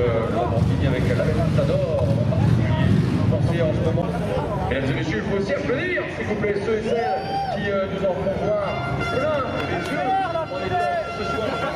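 A sports car engine rumbles deeply close by.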